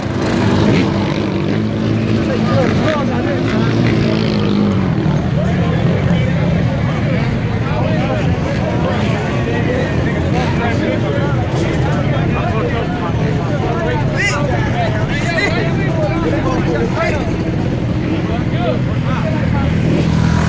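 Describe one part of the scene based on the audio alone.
Quad bike and dirt bike engines idle and rumble close by.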